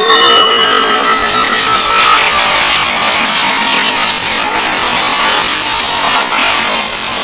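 Magical energy whooshes and swirls loudly.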